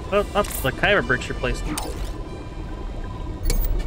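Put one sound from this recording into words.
Short electronic chimes and blips ring out as menu options change.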